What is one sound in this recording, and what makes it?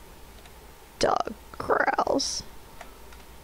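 A young woman speaks briefly into a close microphone.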